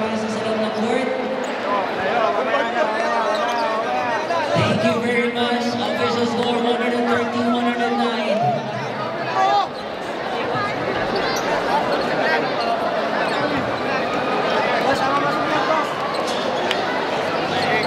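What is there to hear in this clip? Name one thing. Young men shout excitedly close by.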